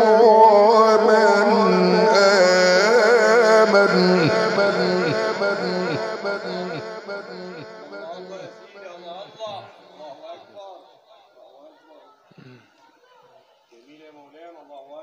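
A middle-aged man chants a long melodic recitation through a microphone and loudspeakers, his voice slowly fading.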